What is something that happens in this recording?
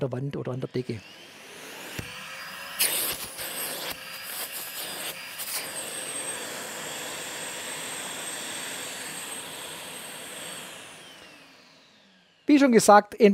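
A vacuum extractor hums steadily, then winds down.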